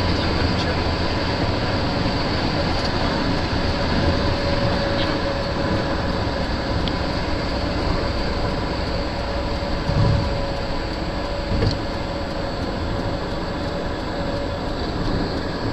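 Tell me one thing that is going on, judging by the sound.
A car drives steadily along a road, with the low rumble of tyres and engine heard from inside.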